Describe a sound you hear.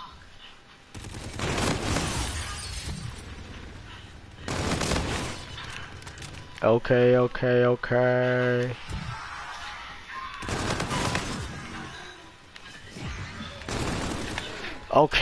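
Rapid gunfire bursts out in loud volleys.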